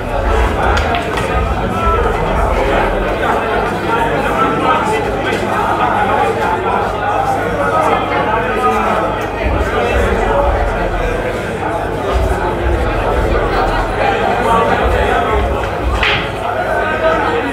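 A large crowd chatters loudly all around.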